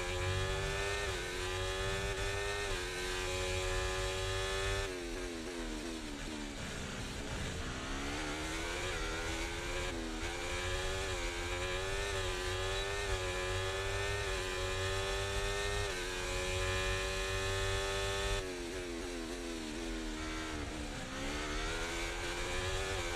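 A racing car engine screams, rising and dropping in pitch with each gear change.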